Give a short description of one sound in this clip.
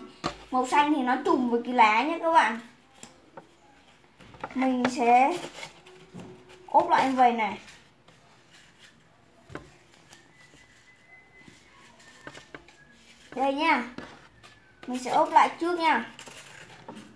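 A young boy speaks calmly close by, in short bursts.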